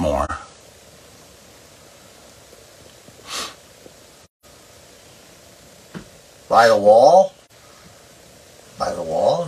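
A man's voice sounds in short, wavering bursts close by.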